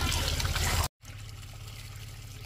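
Water pours from a tap into a basin of water.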